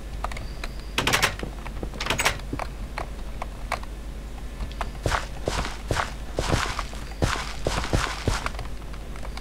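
Dirt blocks crunch as they are dug out, several times.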